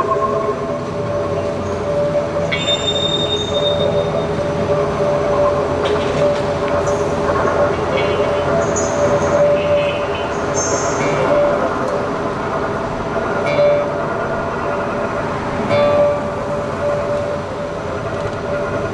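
A violin plays a sustained melody.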